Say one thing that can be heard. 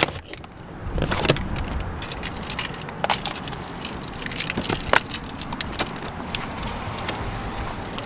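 Footsteps scuff on pavement outdoors.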